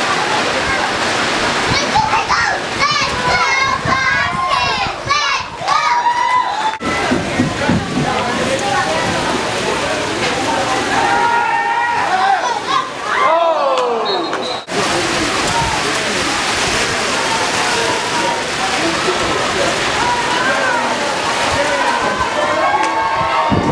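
Adult spectators shout and cheer nearby outdoors.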